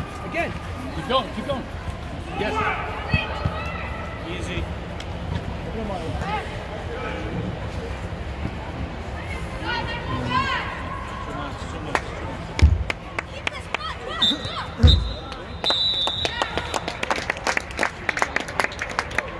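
Young boys shout in a large echoing dome.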